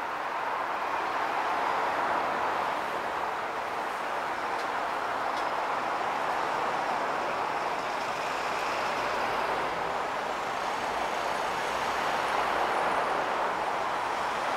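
Steady traffic hums and rushes along a city road below, heard from a distance.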